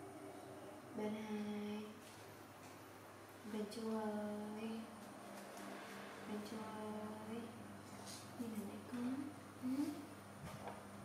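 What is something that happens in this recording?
A young woman speaks softly and sweetly, close by.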